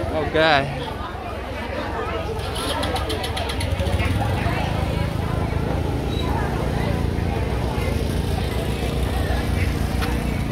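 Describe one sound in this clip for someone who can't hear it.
A crowd of women chatter at a busy outdoor market.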